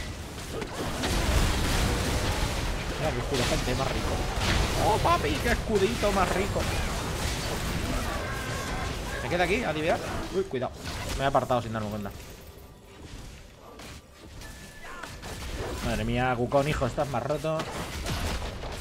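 Magic blasts and impacts crash and burst in a fast fight.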